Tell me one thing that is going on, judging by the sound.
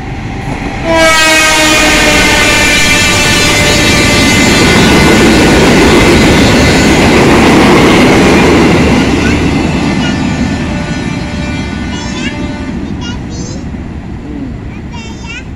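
A train rumbles and clatters past on the rails, then fades into the distance.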